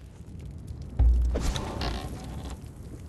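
A heavy wooden door thuds and creaks open.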